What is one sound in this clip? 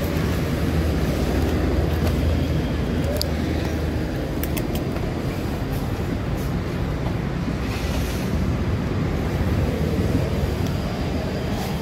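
A small motor vehicle's engine rumbles steadily while driving.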